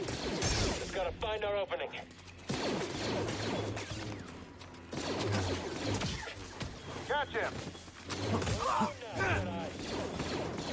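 A lightsaber hums and swooshes as it swings.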